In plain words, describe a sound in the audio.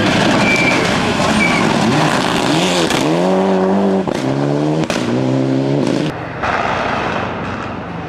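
Gravel sprays and crunches under a car's tyres.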